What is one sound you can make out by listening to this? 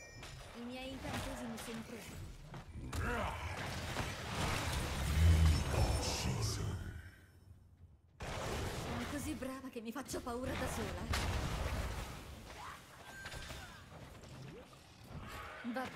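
Magic blasts and weapon clashes crackle in a fast fight.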